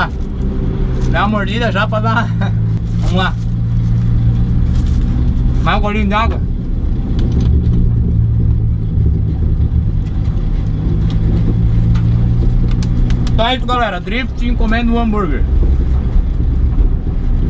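A car engine idles with a steady low rumble inside the cabin.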